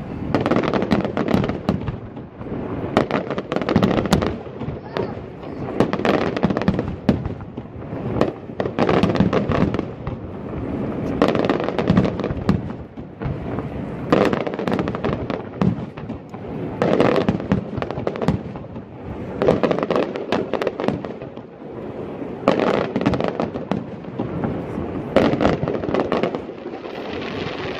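Fireworks burst and crackle loudly in the open air, one after another.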